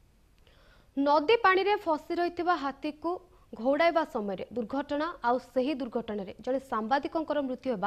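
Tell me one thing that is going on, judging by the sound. A young woman speaks clearly and evenly into a microphone.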